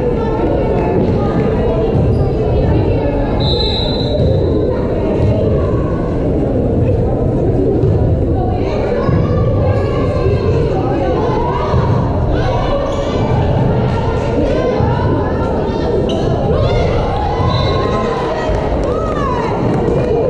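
A crowd chatters and cheers in a large echoing gym.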